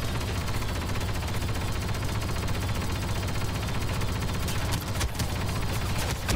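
Blaster shots fire in rapid bursts nearby.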